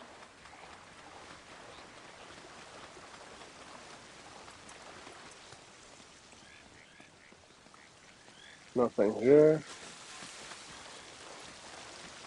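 Water rushes and churns steadily.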